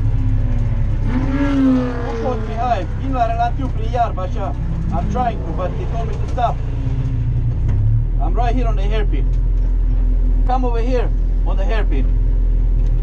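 A man talks over a helmet radio in short bursts.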